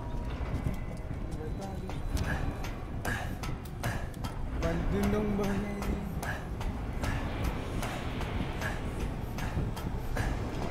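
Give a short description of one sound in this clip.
Boots clank steadily on metal ladder rungs.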